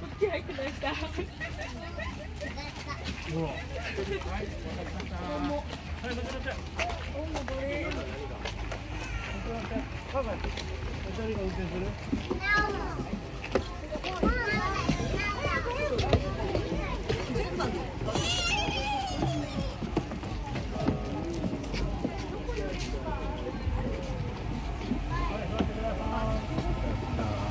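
A crowd of adults and children chatter nearby outdoors.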